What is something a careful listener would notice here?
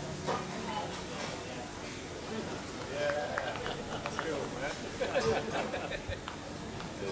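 An acoustic guitar is strummed live.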